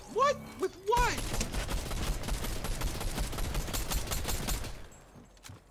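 Gunshots fire in rapid bursts in a video game.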